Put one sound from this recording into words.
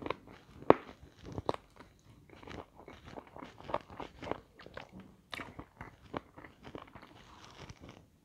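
A woman bites into crispy fried chicken close to a microphone.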